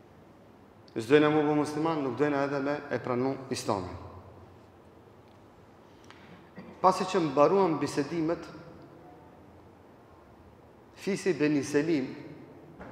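A middle-aged man speaks slowly and solemnly into a microphone, in bursts with long pauses.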